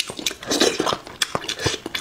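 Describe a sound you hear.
A man slurps food loudly and close up.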